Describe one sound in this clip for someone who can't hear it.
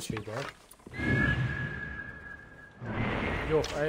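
An eagle cries.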